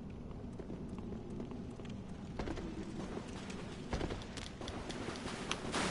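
Footsteps thud on stone.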